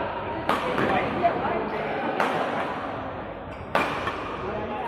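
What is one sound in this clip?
Shuttlecocks are struck sharply by rackets in a large echoing hall.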